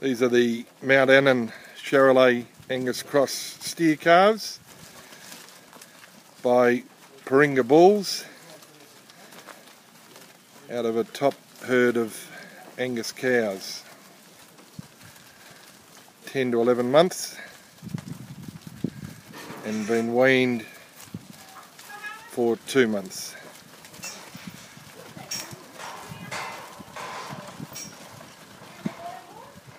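Cattle hooves shuffle and thud on dry dirt.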